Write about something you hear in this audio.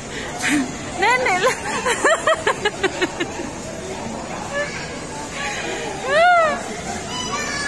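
Young children shout and squeal playfully nearby in an echoing hall.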